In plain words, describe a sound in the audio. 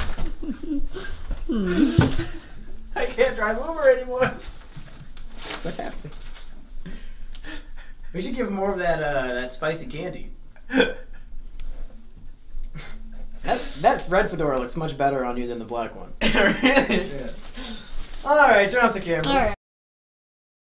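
Young men talk and laugh loudly nearby.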